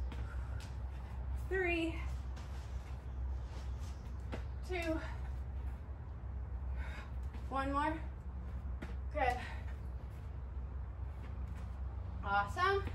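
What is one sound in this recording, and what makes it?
Shoes shuffle softly on an exercise mat.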